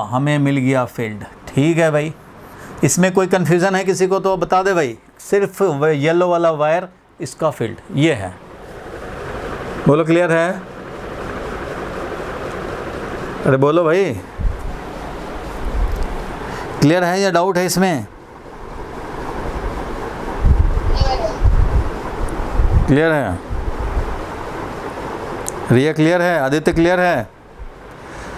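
A man speaks calmly and explains, close by.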